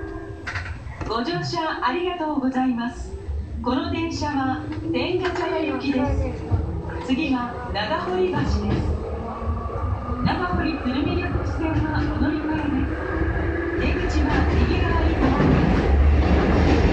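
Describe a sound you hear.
A train's electric motor whines, rising in pitch as the train pulls away and picks up speed.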